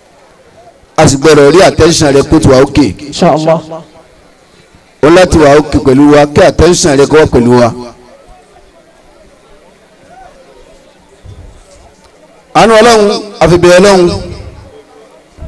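A man chants loudly into a microphone in short bursts, heard through loudspeakers.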